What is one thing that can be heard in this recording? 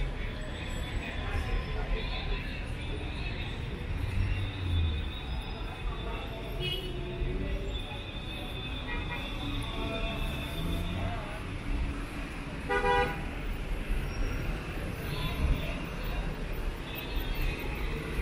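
Men and women chatter in a bustling crowd outdoors.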